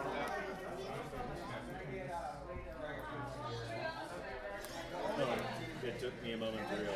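Playing cards rustle and slide on a table.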